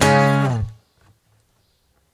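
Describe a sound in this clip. An acoustic guitar chord rings out close by and quickly fades away.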